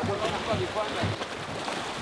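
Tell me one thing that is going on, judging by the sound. Waves splash against rocks close by.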